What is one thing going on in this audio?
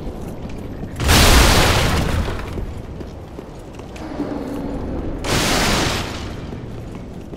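A heavy sword whooshes through the air in big swings.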